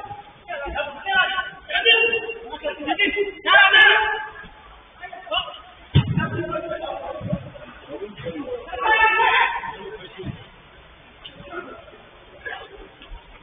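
Men shout and call out to each other.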